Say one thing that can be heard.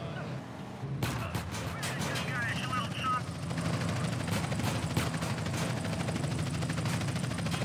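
A car engine revs as the car drives off.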